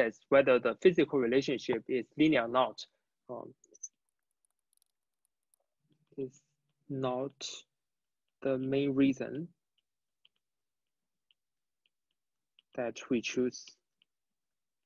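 A young man speaks calmly into a close microphone, pausing between phrases.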